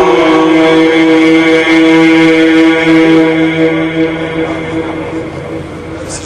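A man chants a long, held melodic phrase through a microphone in a reverberant space.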